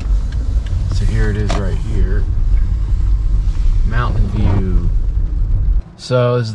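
Rain patters lightly on a windshield.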